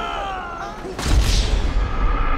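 A body thuds hard onto a road.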